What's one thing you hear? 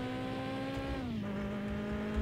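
A car engine drops in pitch briefly as a gear changes.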